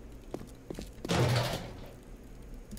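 Rubbish rustles as a bin is searched.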